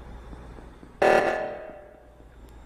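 An alarm blares loudly.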